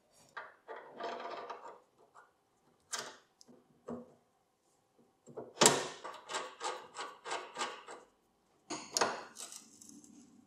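Metal parts click and clink as they are fitted together by hand.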